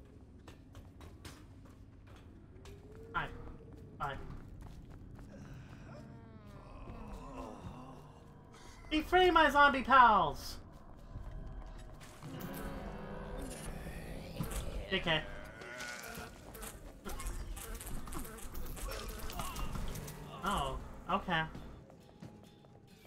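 A woman talks with animation through a close microphone.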